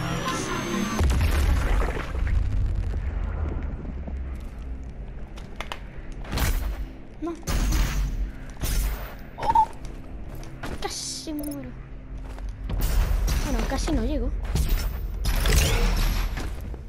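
A heavy gun fires with loud booming blasts.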